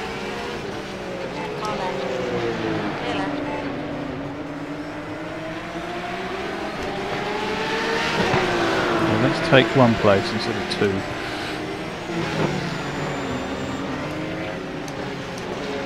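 A race car engine roars steadily, its pitch rising and falling with gear changes.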